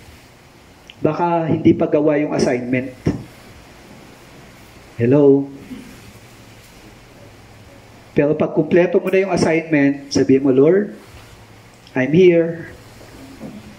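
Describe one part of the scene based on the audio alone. A man speaks calmly through a headset microphone, in short bursts with pauses.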